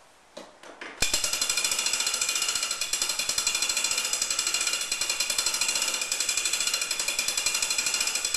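A clock's winding crank ratchets with rapid, steady clicking.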